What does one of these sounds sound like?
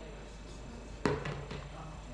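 Pool balls knock together.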